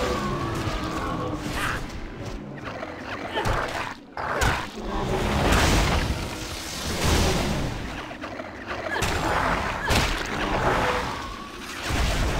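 Blows and impacts thud repeatedly during a fight.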